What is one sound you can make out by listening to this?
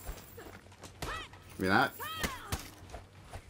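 A man grunts and shouts while fighting.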